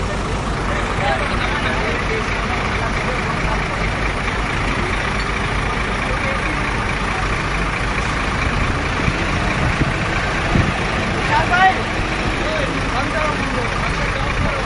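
Men call out to each other outdoors.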